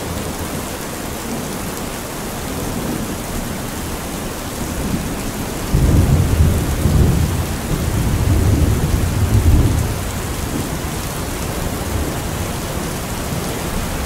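Heavy rain drums steadily on a metal roof.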